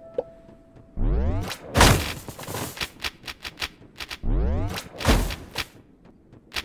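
A weapon whooshes and strikes in short bursts.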